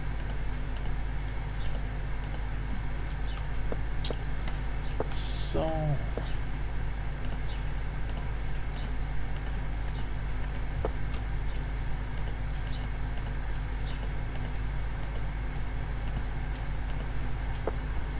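Wooden blocks are placed with soft, dull knocks.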